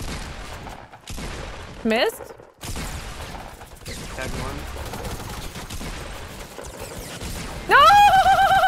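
Video game gunshots crack repeatedly.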